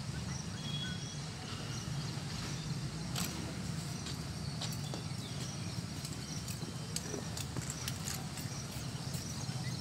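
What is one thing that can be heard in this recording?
Boots stamp on hard ground as an officer marches.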